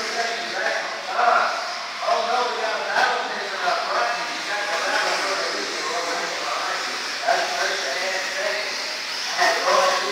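A man talks nearby in a large echoing hall.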